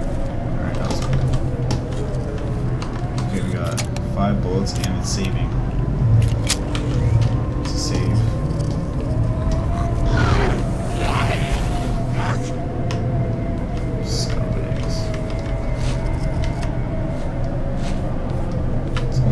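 A young man talks quietly and close into a microphone.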